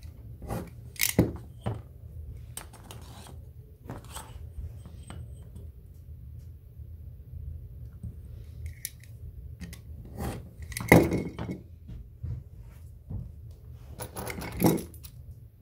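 A metal ruler clicks and knocks against a cutting mat.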